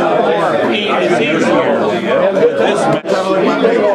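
An elderly man speaks calmly up close.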